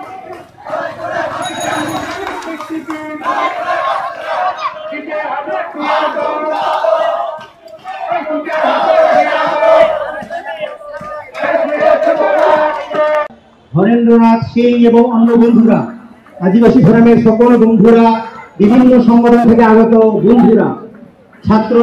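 A crowd of men and women chants slogans loudly outdoors.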